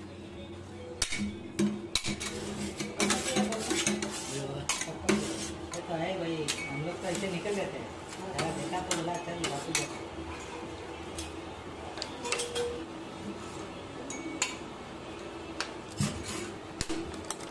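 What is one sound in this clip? Metal spatulas scrape and tap against a cold metal plate.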